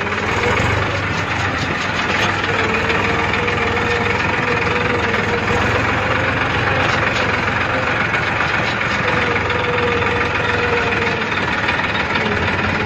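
A tractor rattles and clanks over rough ground.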